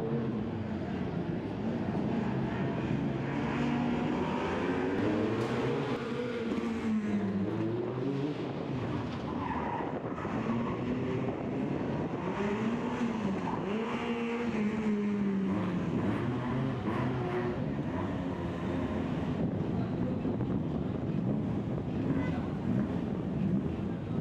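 A rally car engine revs hard, rising and falling in pitch.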